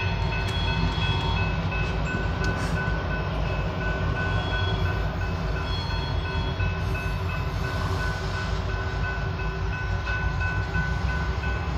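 A freight train rumbles past at a distance, its wheels clattering on the rails.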